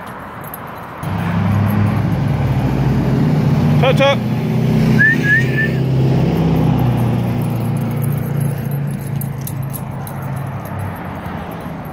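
Traffic rumbles past on a nearby road.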